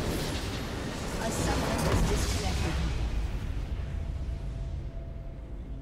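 A loud magical blast booms and slowly fades.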